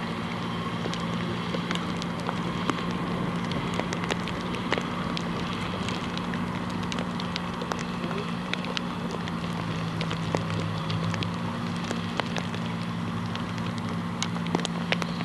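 A horse's hooves thud softly on sand at a steady trot.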